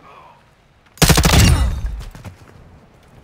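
A rifle fires a short burst up close.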